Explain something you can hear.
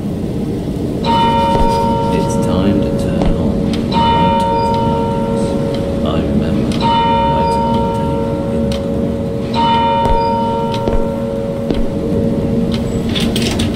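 A pendulum clock chimes slowly, each stroke ringing out.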